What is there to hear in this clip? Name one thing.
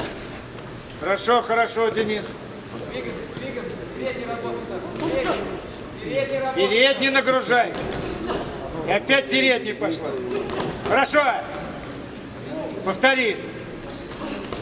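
Spectators shout loudly in bursts in a large echoing hall.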